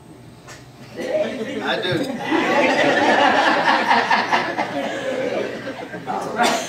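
A crowd of guests laughs loudly and cheerfully.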